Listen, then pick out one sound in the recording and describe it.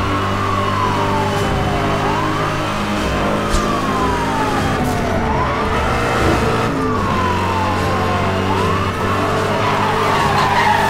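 A car engine roars at high speed, its pitch repeatedly falling and then jumping up as it shifts gears.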